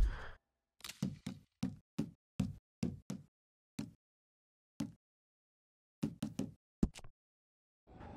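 Short game menu clicks tick one after another.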